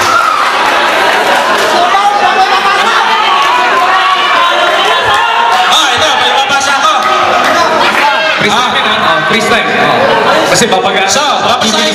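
A group of men sing together through a microphone loudspeaker.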